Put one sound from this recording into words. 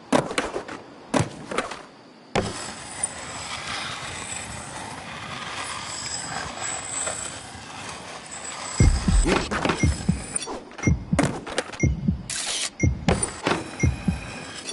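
Skateboard wheels roll and clatter on concrete.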